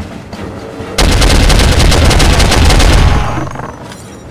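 A machine gun fires a long rapid burst, loud and close.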